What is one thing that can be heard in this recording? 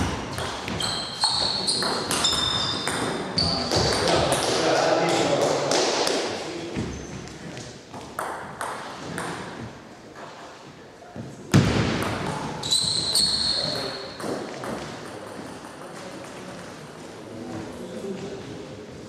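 A ping-pong ball clicks back and forth off paddles and a table in an echoing hall.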